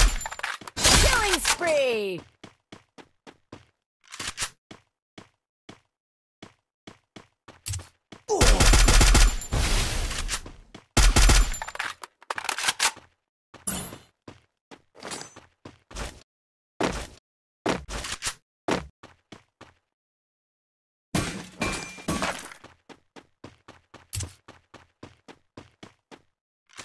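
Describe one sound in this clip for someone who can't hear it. Footsteps patter quickly on grass and wooden floors.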